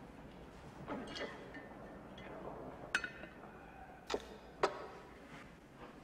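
A glass stopper clinks against a glass carafe.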